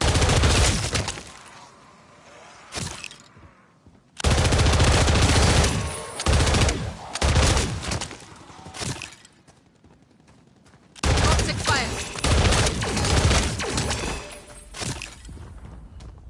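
Gunfire bursts rapidly and loudly.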